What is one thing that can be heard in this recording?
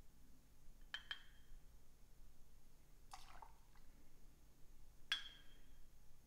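Metal clinks against glass.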